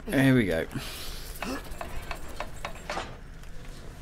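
A wooden lever creaks as it is pulled.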